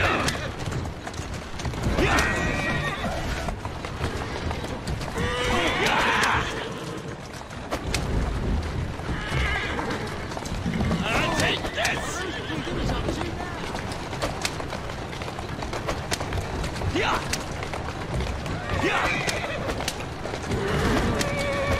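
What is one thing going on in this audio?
Horse hooves clop steadily on stone.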